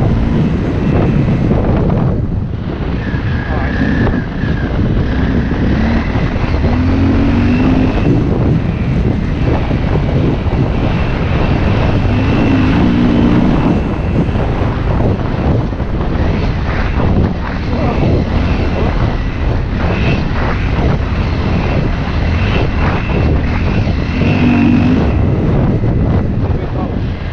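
Tyres crunch and rumble over a bumpy dirt trail.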